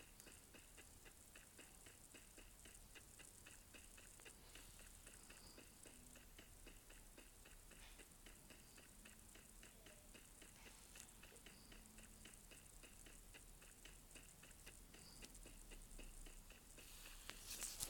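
Quick footsteps run steadily over grass.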